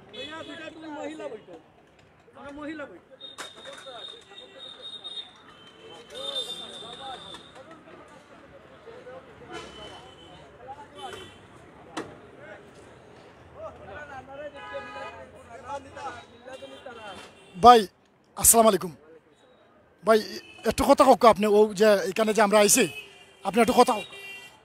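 A man speaks into a handheld microphone close by, asking questions.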